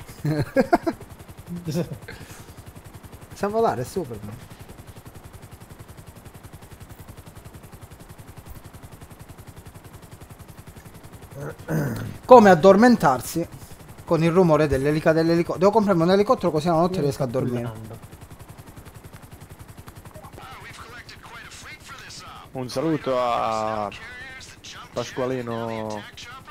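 A helicopter's rotor thrums steadily overhead.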